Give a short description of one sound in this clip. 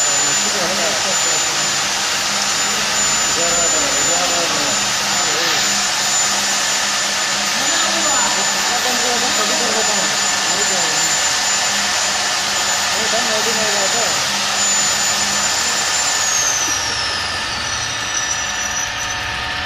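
A drilling machine whirs steadily.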